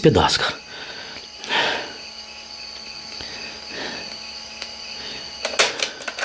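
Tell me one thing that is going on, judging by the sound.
A cassette recorder's button clicks as it is pressed.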